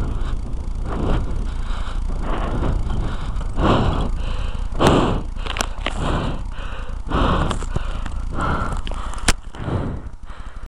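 Wind rumbles and buffets against the microphone.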